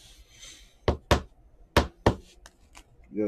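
Trading cards are set down on a mat.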